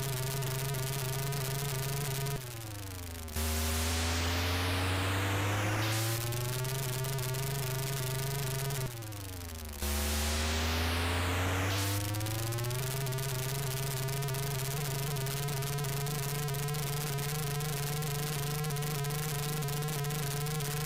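A retro game car engine buzzes steadily, dropping and rising in pitch.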